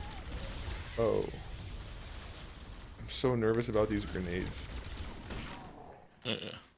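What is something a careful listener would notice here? An energy weapon fires with a crackling electric burst.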